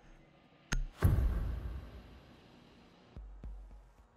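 A loud whoosh sweeps through and fades away.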